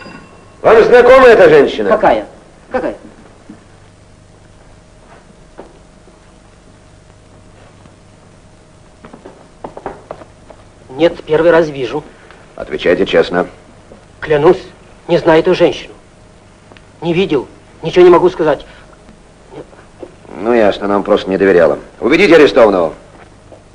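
A man speaks urgently and with agitation.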